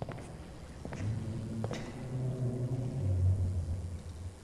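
A man speaks through a close microphone in a low, calm voice.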